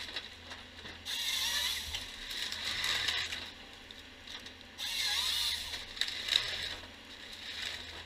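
A harvester head saws through a log with a loud whine.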